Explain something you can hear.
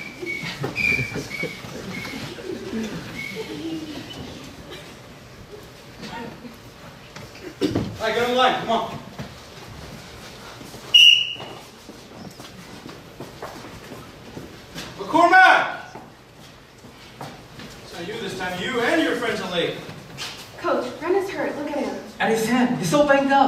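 Young actors speak and call out loudly in a small echoing hall.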